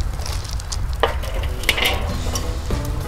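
A metal cooking grate clanks onto a grill.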